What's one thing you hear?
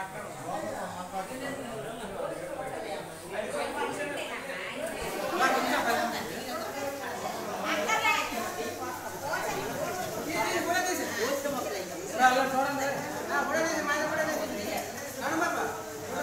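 Several women and men talk over one another nearby, in a room with some echo.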